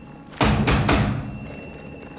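A man bangs loudly on a metal door with his fist.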